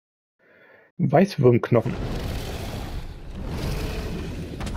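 A huge creature roars loudly.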